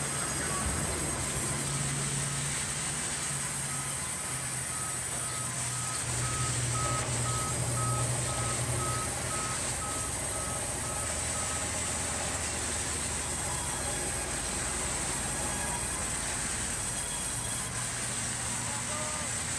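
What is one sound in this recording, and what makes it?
A large band saw whirs and hums loudly and steadily.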